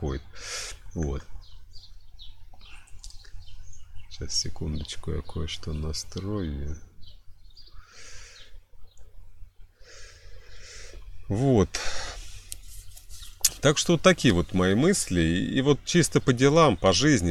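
A man speaks calmly and close to the microphone.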